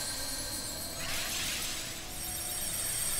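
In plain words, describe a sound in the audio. A sparkling magical whoosh swells up and fades.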